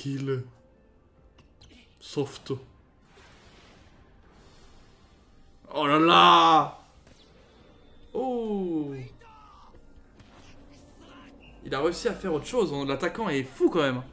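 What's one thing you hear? A young man talks close to a microphone, in short bursts with pauses.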